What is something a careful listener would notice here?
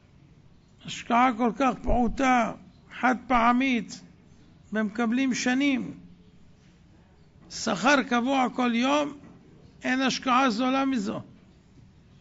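A man speaks with animation into a microphone, in short bursts with pauses.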